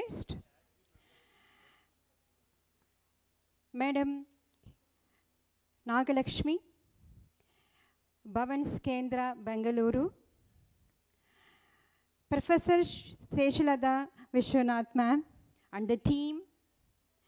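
A middle-aged woman speaks calmly through a microphone, with pauses.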